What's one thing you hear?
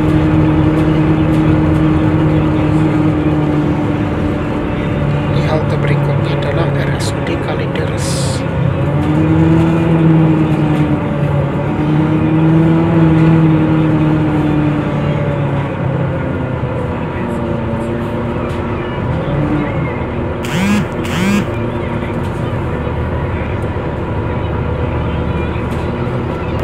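A bus engine hums and whines steadily, rising and falling as the bus moves.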